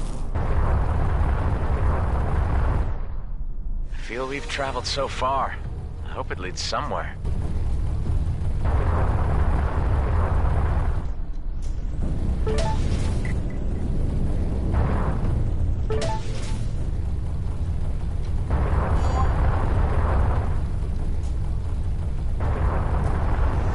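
A spaceship engine roars with a deep, steady rumble.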